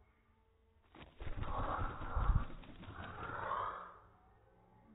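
A budgie's wings flutter in a short burst of flight.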